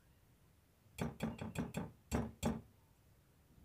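A wire whisk taps and scrapes against a bowl.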